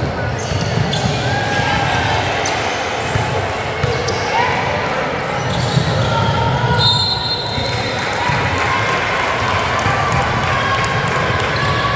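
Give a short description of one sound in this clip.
Young women shout and call out across a large echoing gym.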